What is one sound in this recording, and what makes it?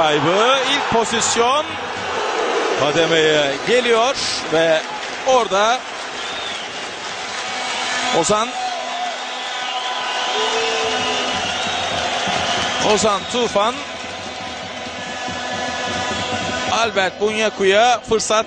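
A crowd murmurs and cheers across a large open stadium.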